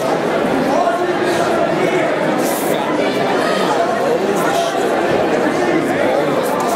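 A crowd of spectators shouts and cheers loudly nearby.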